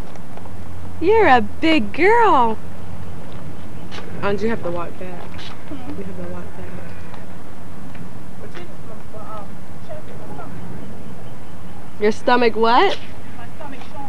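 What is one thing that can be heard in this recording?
A woman calls out nearby in a high, excited voice.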